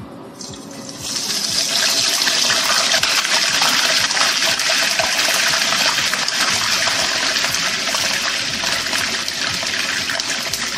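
Batter sizzles and crackles loudly in hot oil.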